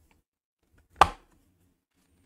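A plastic box lid snaps open with a click.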